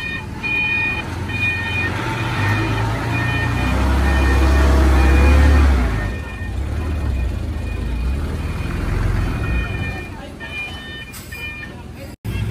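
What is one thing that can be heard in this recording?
A truck's reversing alarm beeps in a steady rhythm.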